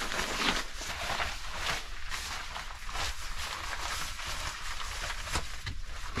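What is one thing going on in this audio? A jacket rustles as a man puts it on.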